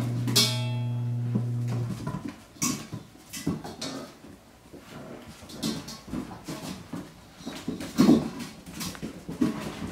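A metal bowl clanks and scrapes on the floor.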